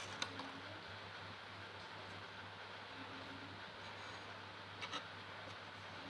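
A small tool clicks lightly on a guitar fret.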